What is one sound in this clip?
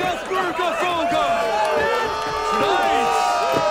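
A man shouts a toast loudly.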